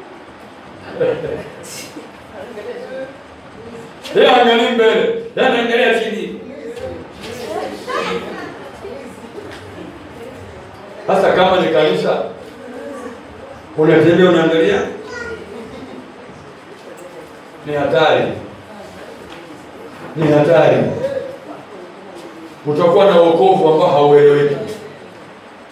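A man speaks calmly and close by, with pauses between phrases.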